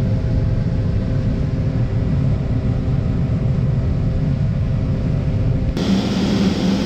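A combine harvester's engine drones steadily from inside the cab.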